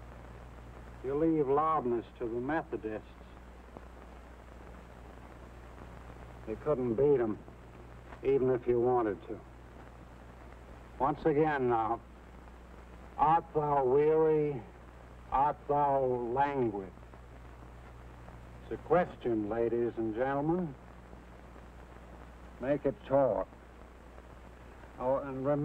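A man speaks loudly and with animation, in short bursts.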